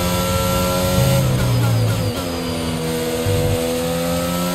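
A racing car engine drops in pitch as the car brakes hard, then climbs again.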